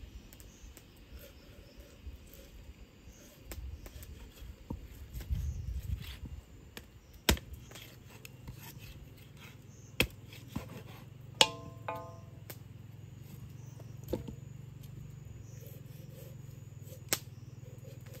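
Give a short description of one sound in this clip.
A cleaver chops into a carcass with sharp thuds.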